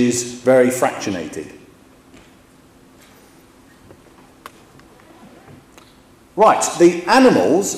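A man lectures through a microphone in a large echoing hall.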